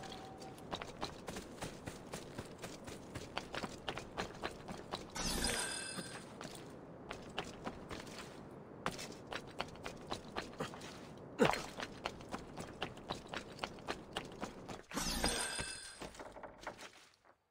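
Quick footsteps patter across clay roof tiles.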